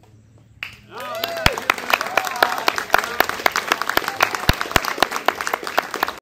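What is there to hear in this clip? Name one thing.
Children clap their hands in a quick rhythm.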